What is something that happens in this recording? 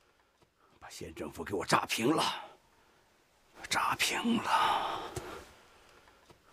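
A middle-aged man speaks urgently and with agitation, close by.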